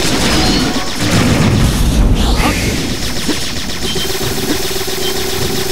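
Gunshots and explosions burst in a video game.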